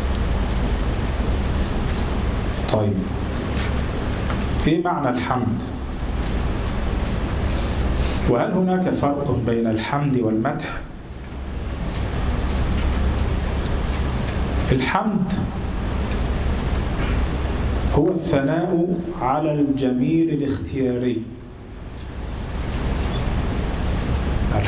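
A middle-aged man speaks calmly and steadily into a microphone.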